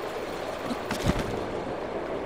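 A paraglider's cloth snaps open with a sudden whoosh.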